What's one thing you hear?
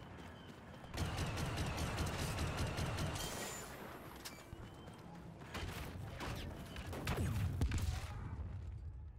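A blaster rifle fires rapid bursts of shots.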